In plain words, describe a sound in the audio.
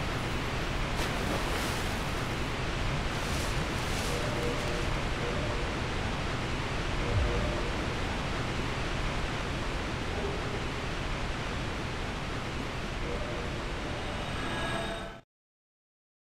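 Water rushes and splashes steadily nearby.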